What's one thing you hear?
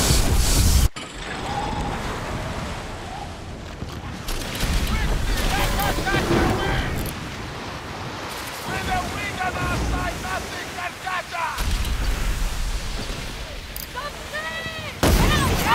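Waves wash and splash against a sailing ship's hull.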